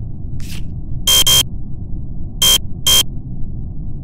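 A harsh electronic buzzer sounds several times as a card reader rejects a card.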